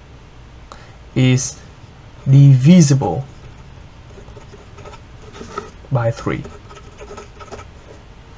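A marker squeaks softly across paper.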